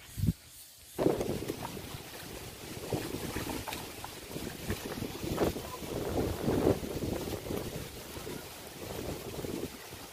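Footsteps crunch and clatter over loose stones outdoors.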